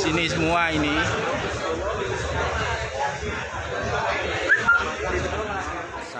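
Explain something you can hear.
A crowd of men talk and murmur close by.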